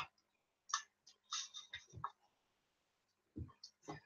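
Glass jars clink as one is picked up.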